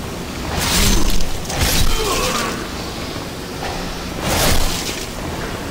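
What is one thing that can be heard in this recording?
A sword swings and strikes with sharp whooshes.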